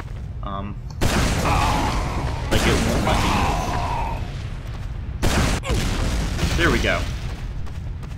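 Rockets blast off with a loud whoosh.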